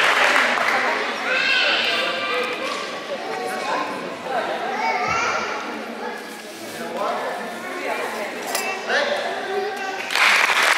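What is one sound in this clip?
A man speaks in a large echoing hall.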